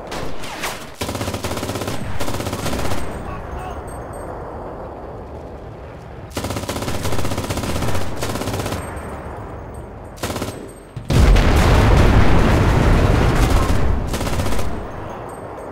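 A machine gun fires loud, rapid bursts close by.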